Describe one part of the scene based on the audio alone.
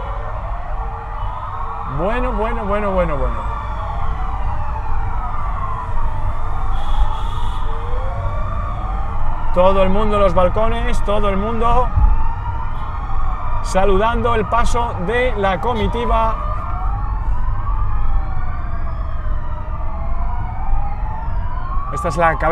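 Police sirens wail and rise and fall without pause.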